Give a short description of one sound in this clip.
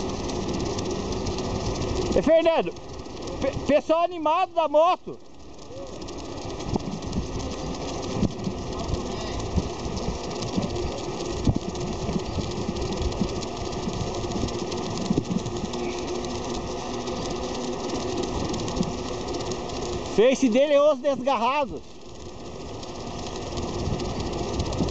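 Wind rushes loudly past a moving bicycle outdoors.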